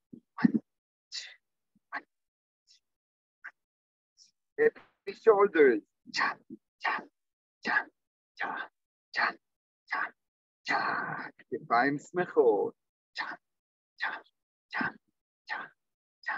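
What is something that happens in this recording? A middle-aged man speaks in short, measured phrases close to a microphone, heard over an online call.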